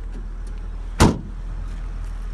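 A car boot lid slams shut with a heavy thud.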